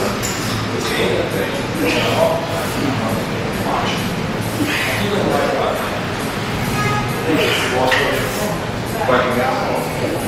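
A man grunts with effort while lifting.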